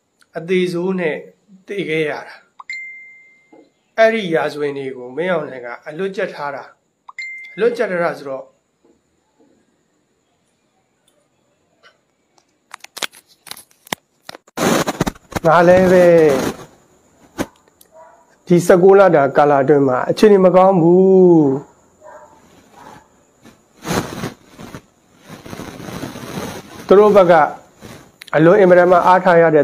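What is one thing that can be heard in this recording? A man speaks calmly and steadily into a microphone, with pauses.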